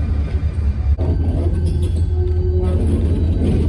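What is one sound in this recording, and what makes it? A diesel locomotive engine idles with a deep rumble.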